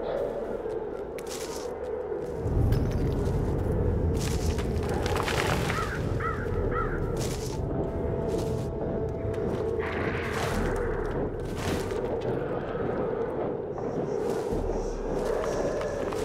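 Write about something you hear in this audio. Footsteps patter quickly over stone and gravel.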